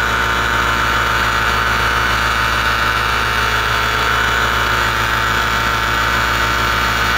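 Wind rushes steadily past the microphone.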